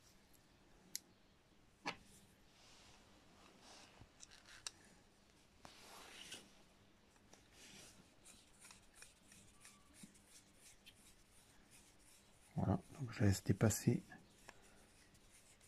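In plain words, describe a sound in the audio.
Small metal parts click softly.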